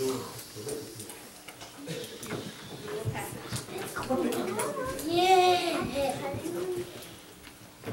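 A man talks in an echoing hall.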